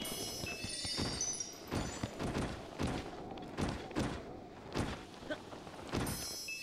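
A game figure tumbles and thuds down a grassy slope.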